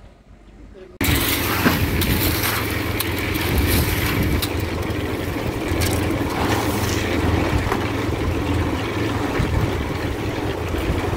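A concrete mixer runs with a loud, steady rumble.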